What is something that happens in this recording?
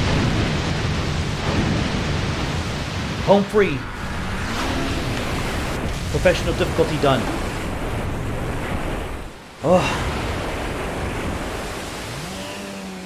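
Water sprays and splashes loudly.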